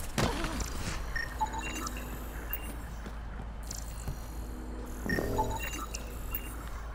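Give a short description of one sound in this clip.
Electronic beeps and chimes sound.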